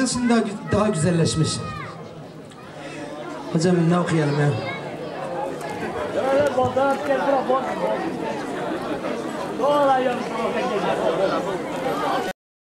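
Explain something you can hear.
A man sings loudly into a microphone through loudspeakers outdoors.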